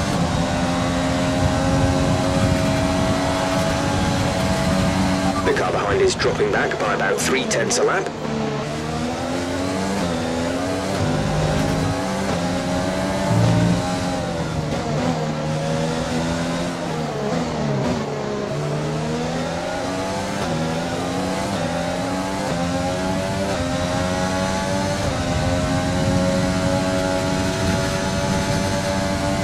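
A racing car engine roars at high revs, rising and falling as it shifts gears.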